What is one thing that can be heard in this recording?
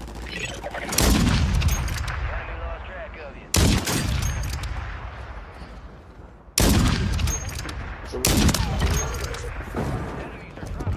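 A rifle fires loud single shots that echo and fade.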